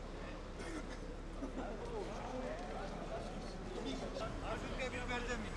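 A crowd of men talks and murmurs outdoors.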